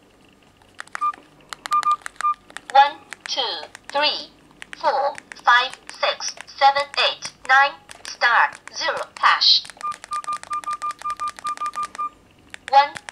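A mobile phone beeps short tones as its keys are pressed.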